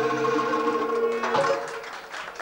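A hand drum thumps in rhythm.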